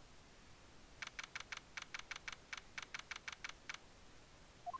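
Typewriter-style game clicks tick rapidly as a line of text types out.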